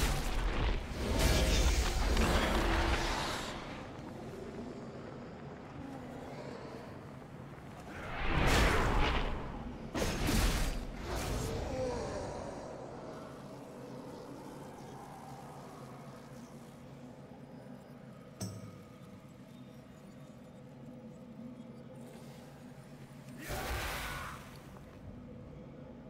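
Magic spells whoosh and burst in a fight.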